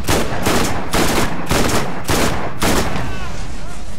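Rapid gunfire bursts loudly in a video game.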